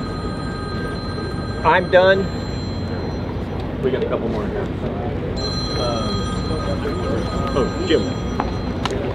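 An elderly man speaks to a group outdoors.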